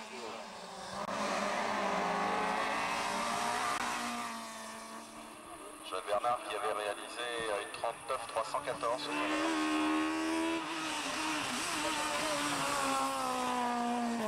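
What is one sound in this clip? A rally car engine screams and revs hard as it passes close by.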